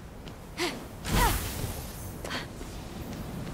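A magic spell bursts with a bright whoosh.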